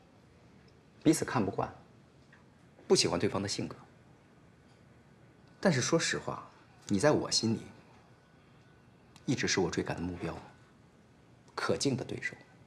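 A young man speaks calmly and quietly nearby.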